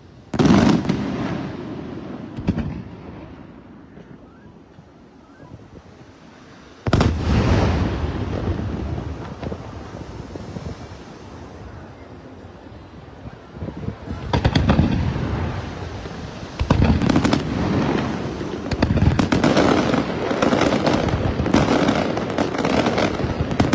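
Fireworks boom loudly and echo overhead.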